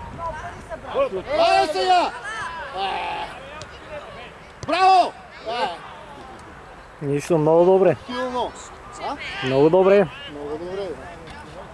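Young men shout loudly across an open field.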